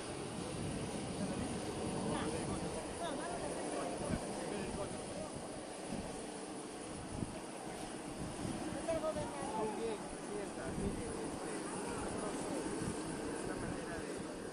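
Men and women chat quietly nearby.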